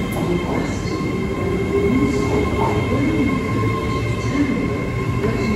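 A train engine hums steadily with a droning whine.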